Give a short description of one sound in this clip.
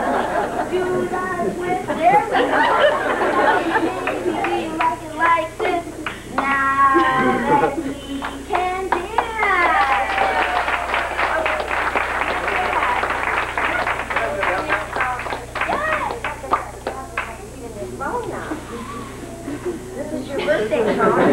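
A woman speaks and laughs.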